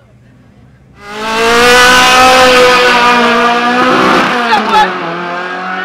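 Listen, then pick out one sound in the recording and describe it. Tyres screech and spin on the track.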